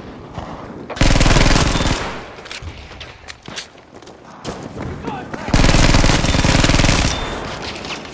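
Bursts of rapid gunfire ring out loudly.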